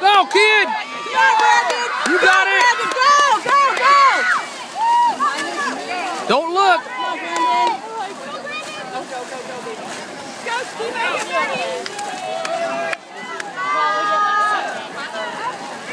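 A crowd of people cheers and shouts loudly outdoors.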